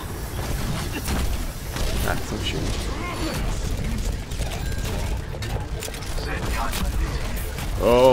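A grenade launcher fires with hollow thumps.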